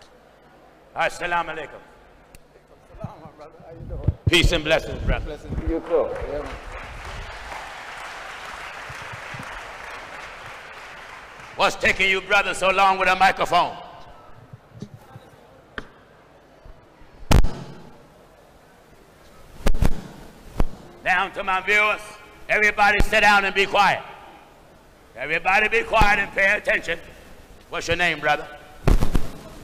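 A man speaks loudly through a loudspeaker with an echo.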